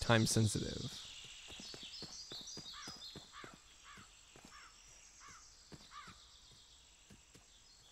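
Footsteps tread softly over grass and dirt.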